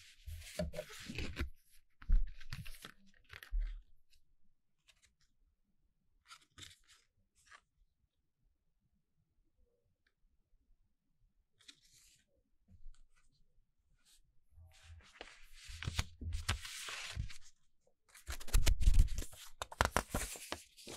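Paper and card rustle and slide under hands, close by.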